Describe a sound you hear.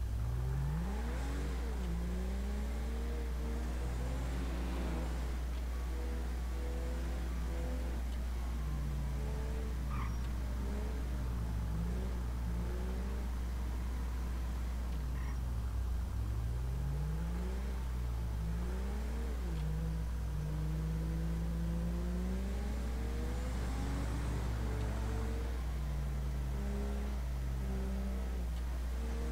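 A car engine hums and revs as the car drives along a road.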